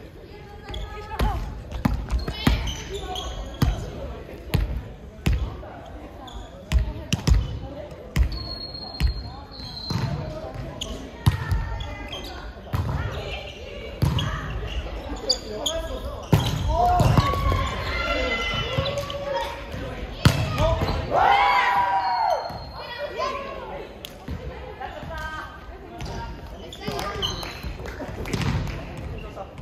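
A volleyball is struck with sharp slaps again and again.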